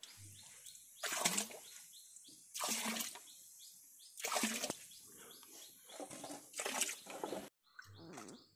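Water pours from a metal pot and splashes into a shallow pool.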